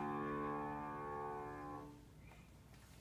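A piano plays a few sustained chords.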